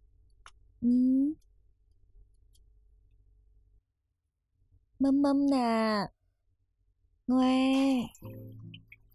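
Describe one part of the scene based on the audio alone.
A baby cries loudly nearby.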